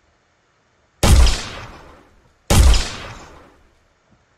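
A gun fires two loud shots, each ringing out and fading slowly.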